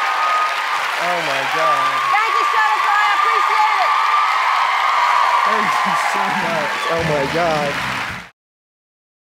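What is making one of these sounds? A young man shouts with excitement.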